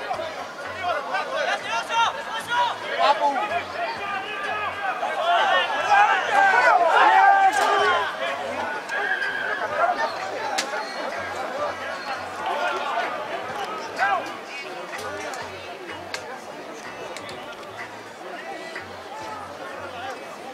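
A crowd of spectators cheers and shouts outdoors, loudest early on and then quieter.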